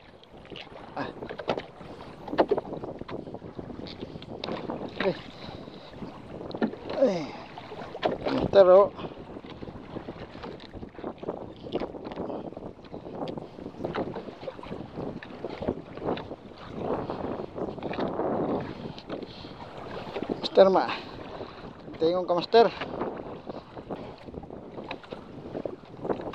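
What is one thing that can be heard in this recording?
Waves splash against a small wooden boat's hull.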